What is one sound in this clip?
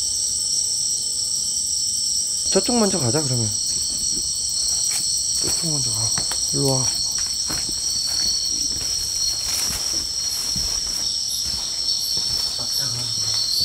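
Footsteps crunch and rustle through undergrowth.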